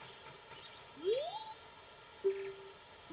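A short rising tone sounds from a video game as a dialogue box opens.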